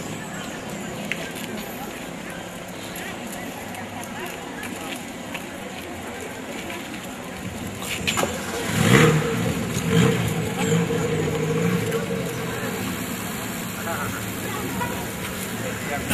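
A crowd of men and women murmurs and talks outdoors.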